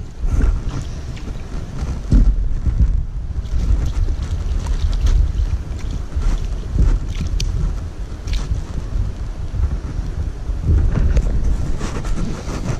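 A fish flaps and splashes in a net.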